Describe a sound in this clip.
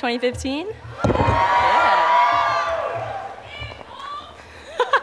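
A young woman laughs into a microphone.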